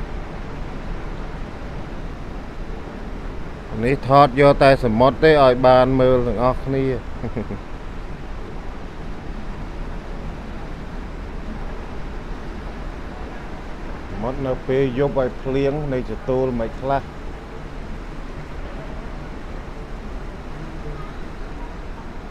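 Waves break and wash steadily onto a shore.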